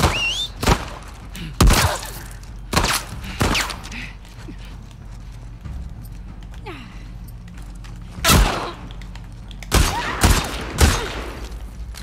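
Loud gunshots ring out one at a time, with short echoes.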